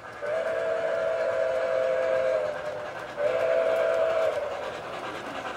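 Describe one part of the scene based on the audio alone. A model train whistle blows twice.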